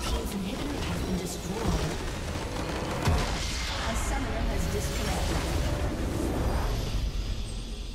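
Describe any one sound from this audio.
A building in the game explodes and crumbles.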